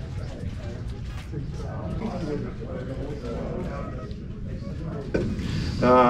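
A man nearby talks quietly.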